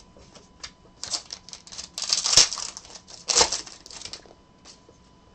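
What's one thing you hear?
A foil wrapper crinkles and rustles loudly as it is torn open.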